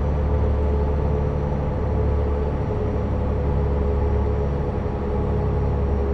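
A bus engine hums steadily as the bus drives along.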